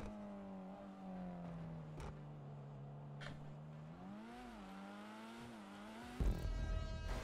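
A car engine hums steadily, its pitch rising and falling as the car drives.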